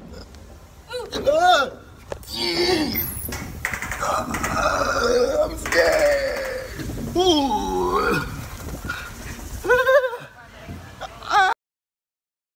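A young man screams and yells in fright.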